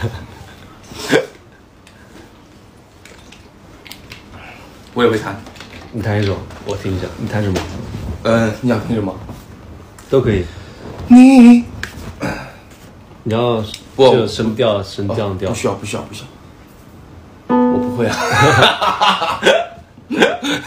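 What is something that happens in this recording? Two young men laugh.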